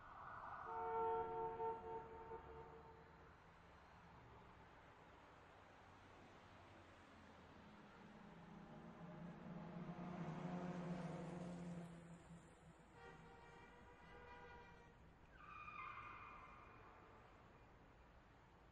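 A racing car engine roars past several times, rising and fading.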